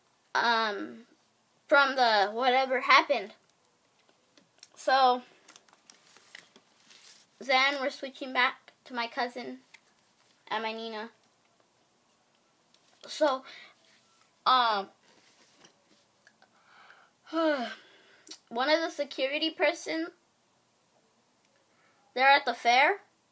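A young boy talks with animation close to a microphone, in short bursts with pauses.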